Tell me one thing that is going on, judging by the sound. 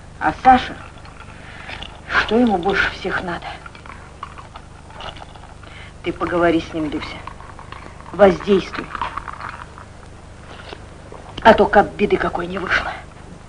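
A middle-aged woman talks calmly, close by.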